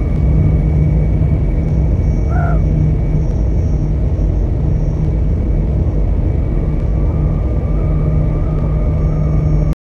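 A propeller plane's engines drone steadily as it taxis.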